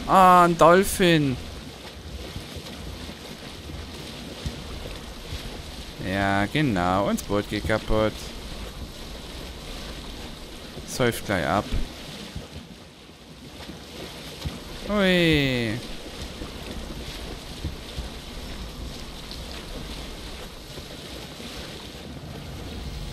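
Water splashes and rushes against a sailing boat's hull as it moves through waves.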